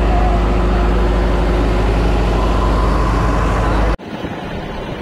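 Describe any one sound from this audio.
A boat engine drones steadily and loudly close by.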